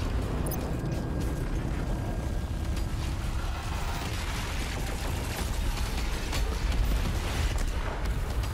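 Explosions boom and crackle with fire.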